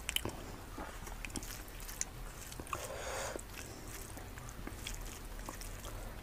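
Fingers squish and mix soft rice close up.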